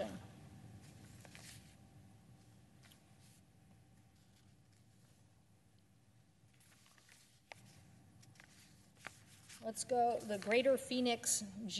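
Papers rustle as a woman handles sheets.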